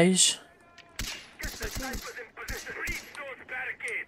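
A rifle fires several sharp shots in quick succession.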